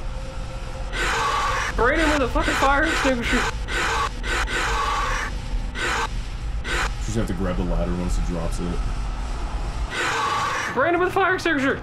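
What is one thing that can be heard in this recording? A fire extinguisher sprays in loud hissing bursts.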